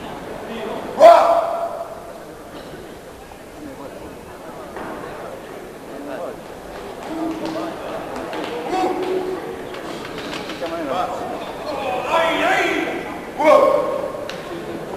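A man shouts loudly nearby in an echoing hall.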